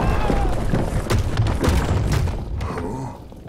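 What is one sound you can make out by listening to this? Heavy stone blocks crash and tumble down with deep rumbling thuds.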